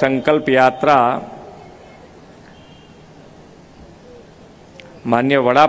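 An elderly man speaks slowly and with emphasis through a microphone and loudspeakers.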